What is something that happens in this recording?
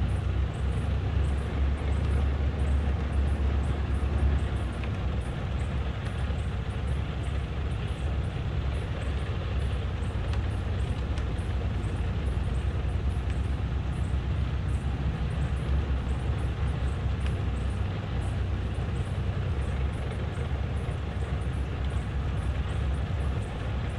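A tank engine rumbles steadily up close.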